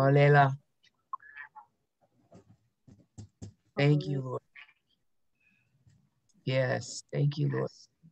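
A man speaks in short bursts through an online call.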